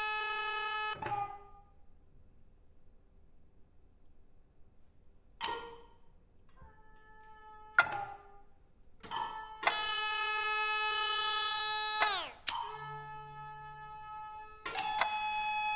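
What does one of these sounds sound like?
Percussion strikes ring out sharply now and then.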